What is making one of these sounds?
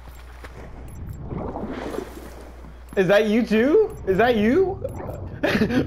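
Water swirls and splashes around a swimmer's strokes.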